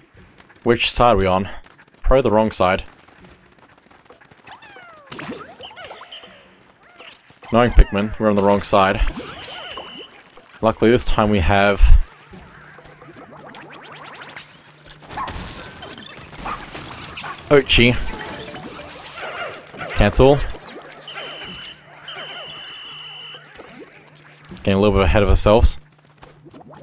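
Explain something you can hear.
Small game creatures chatter in high squeaky voices.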